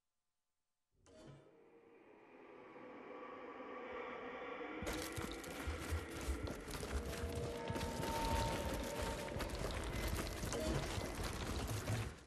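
Wind howls in a snowstorm.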